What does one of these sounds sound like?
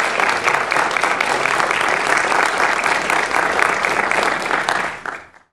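An audience claps and applauds loudly in a hall.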